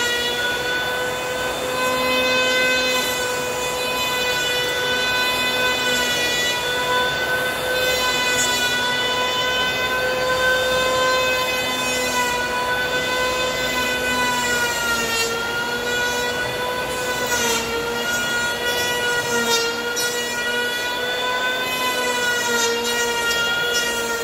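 An electric hand planer whines steadily as it shaves wood.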